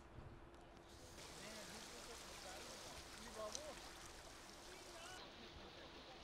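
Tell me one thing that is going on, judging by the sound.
Floodwater swishes and splashes around a man wading through it.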